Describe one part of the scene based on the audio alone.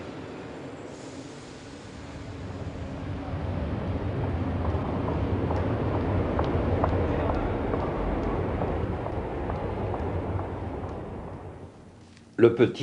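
A metro train rumbles and roars through a tunnel.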